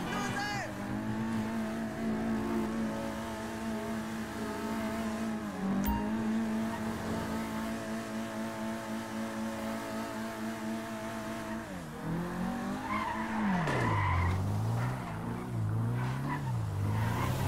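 A car engine revs steadily as the car drives in reverse.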